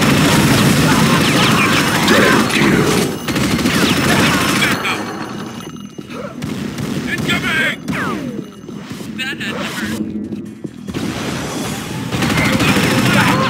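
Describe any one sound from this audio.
A heavy gun fires rapidly.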